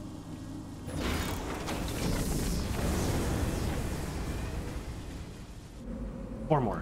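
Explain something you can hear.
A large machine rumbles and whirs.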